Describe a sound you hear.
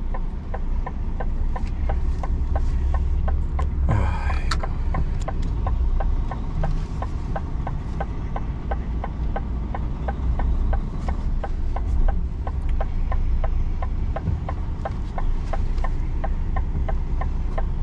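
A turn signal ticks rapidly and evenly.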